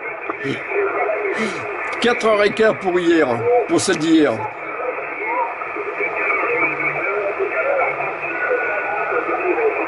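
A man's voice talks through a crackly radio loudspeaker.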